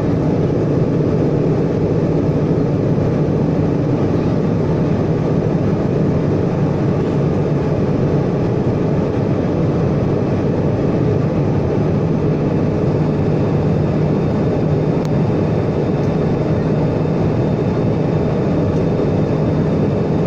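Jet engines roar steadily from close by.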